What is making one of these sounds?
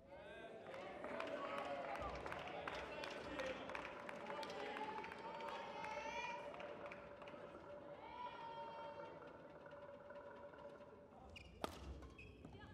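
A shuttlecock is struck back and forth with rackets in a large echoing hall.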